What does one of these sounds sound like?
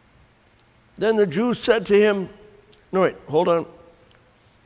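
An older man speaks calmly and close by, in short phrases.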